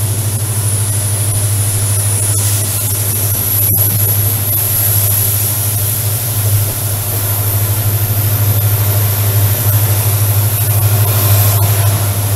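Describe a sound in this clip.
A diesel locomotive engine drones steadily nearby.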